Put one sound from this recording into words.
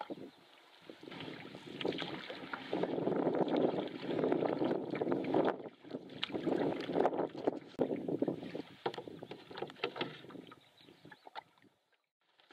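Water splashes and laps against a canoe as a paddle strokes.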